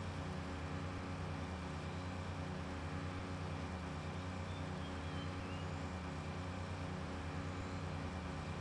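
Water splashes and churns behind a boat.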